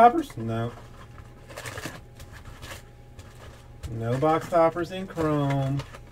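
Cardboard packaging tears open.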